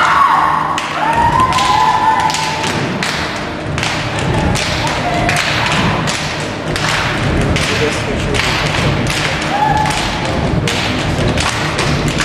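Bare feet stamp on a wooden stage in rhythm.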